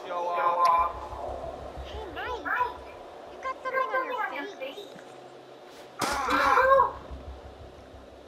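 A young woman speaks playfully, close by.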